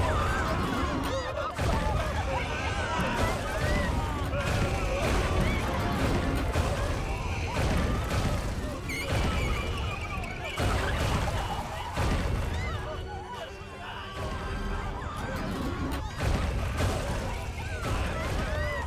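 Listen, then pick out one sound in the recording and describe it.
Heavy metal footsteps thud and boom as a giant robot stomps.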